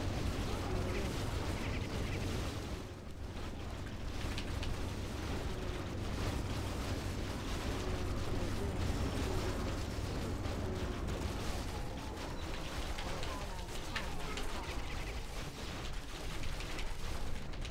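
Weapons clash in a battle.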